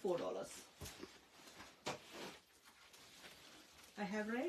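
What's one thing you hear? Plastic-wrapped fabric rustles as it is handled.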